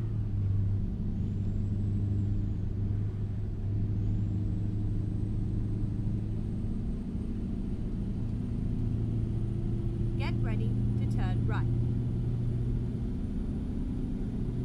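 A truck engine drones steadily while driving along a road.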